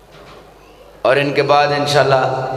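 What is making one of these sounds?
A young man sings loudly through a microphone and loudspeakers, with a strong echo.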